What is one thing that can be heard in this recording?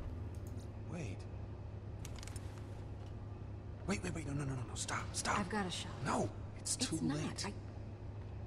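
A man speaks in a tense, hushed voice.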